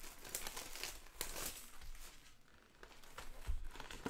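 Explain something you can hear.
Plastic wrap crinkles and tears as it is pulled off a box.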